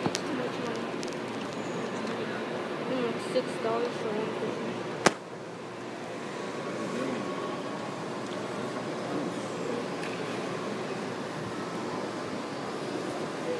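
Voices murmur in the background of a large echoing space.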